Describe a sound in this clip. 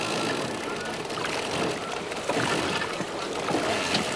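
Water splashes as a trap is hauled up.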